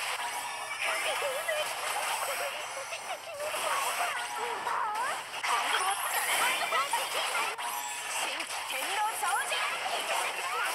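Magic blasts and sword strikes whoosh and crash in quick succession.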